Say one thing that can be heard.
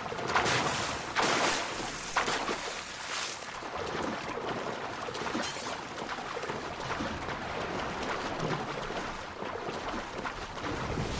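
A swimmer splashes steadily through water with rhythmic strokes.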